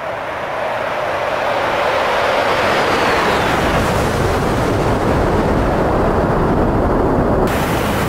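A jet engine's whine sweeps down in pitch as an aircraft passes.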